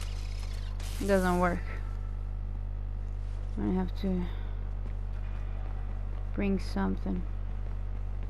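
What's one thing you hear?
A young woman speaks briefly and casually into a microphone.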